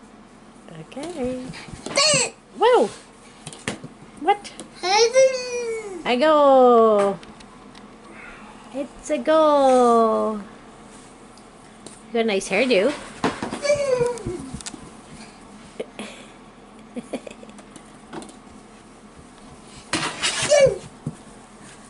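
A toddler babbles and shouts excitedly nearby.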